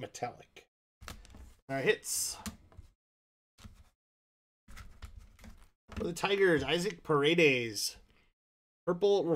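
Plastic card sleeves rustle and click in hands.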